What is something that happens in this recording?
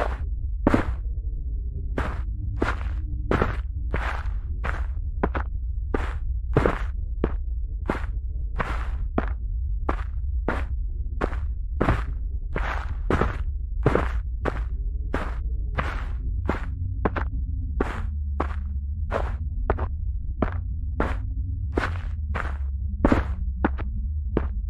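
Footsteps crunch through dry leaves and undergrowth at a steady walking pace.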